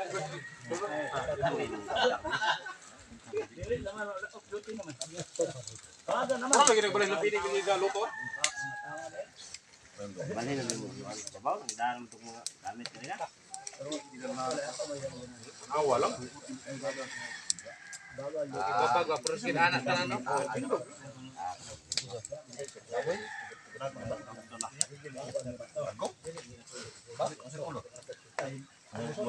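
Several men talk casually nearby, outdoors.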